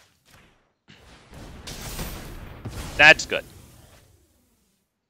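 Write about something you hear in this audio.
A game spell effect whooshes and sparkles.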